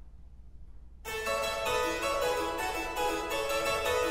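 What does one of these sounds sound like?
A small ensemble of strings and harpsichord plays lively music.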